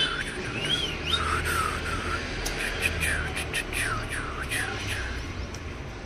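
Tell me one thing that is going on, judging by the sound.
A puppy whimpers and whines in high cries.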